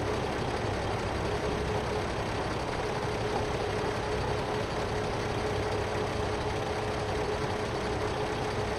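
A tractor engine idles steadily.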